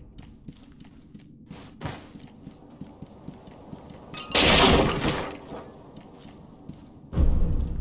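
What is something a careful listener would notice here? Quick footsteps patter on wooden floorboards.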